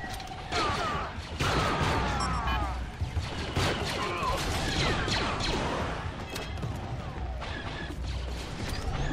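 Laser blasters fire in rapid bursts with whining zaps.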